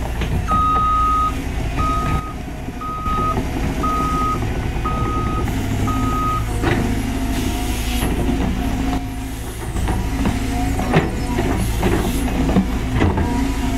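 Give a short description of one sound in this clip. An excavator engine rumbles steadily close by.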